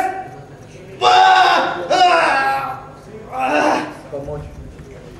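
Several men shout encouragement.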